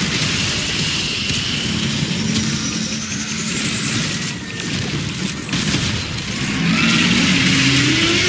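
Energy blasts crackle and explode in a video game.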